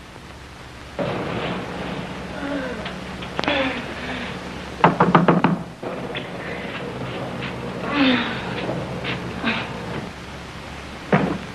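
A woman speaks with agitation.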